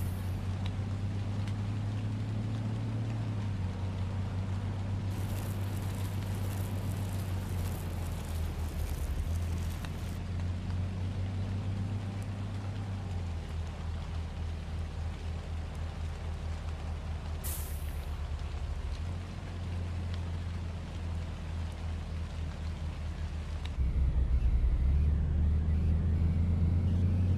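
A bus engine hums low and steady, its pitch shifting with speed.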